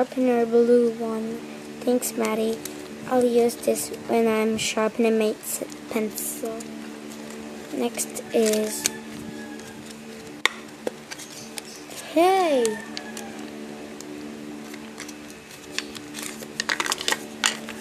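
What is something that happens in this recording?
A plastic case clicks and rattles as it is handled.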